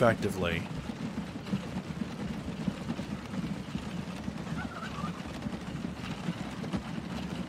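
Horse hooves clop steadily on cobblestones.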